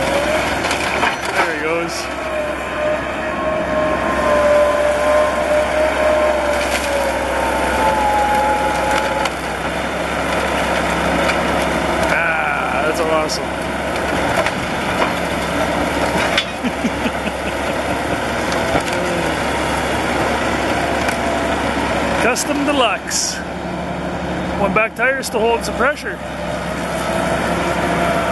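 A bulldozer engine roars loudly and steadily.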